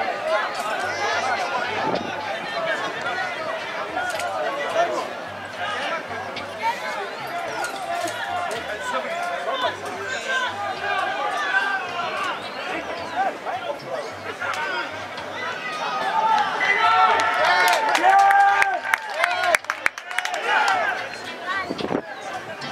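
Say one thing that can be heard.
A crowd of spectators shouts and cheers from the sideline.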